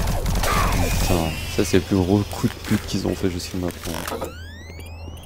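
A young man talks into a close microphone with animation.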